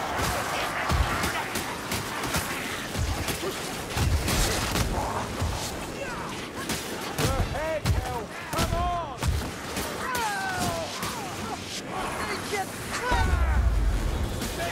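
Swords and axes clash and hack into monsters.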